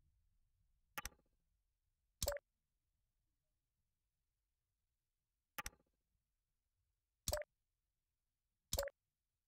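Short, sharp clicks sound a few times, spaced a second or more apart.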